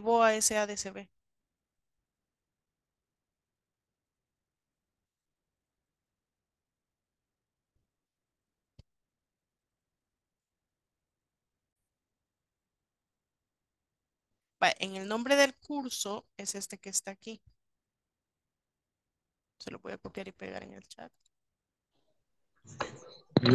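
A woman speaks calmly over an online call, in short bursts with long pauses.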